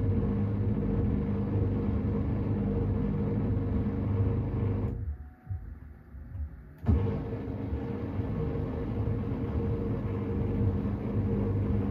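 A washing machine drum turns with a steady low hum.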